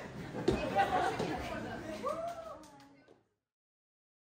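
A small audience cheers and murmurs.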